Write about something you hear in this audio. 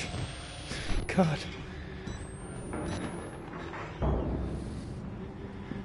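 A young man speaks quietly into a close microphone.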